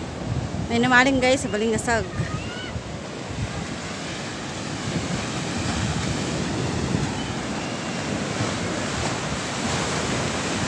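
Waves break and wash against a sea wall.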